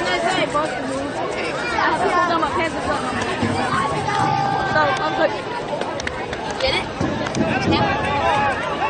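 A crowd of spectators shouts and cheers nearby outdoors.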